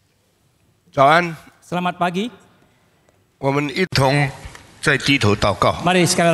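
An elderly man speaks through a microphone in a large hall.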